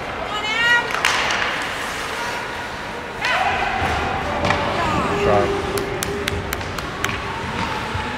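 Sticks clack against the puck.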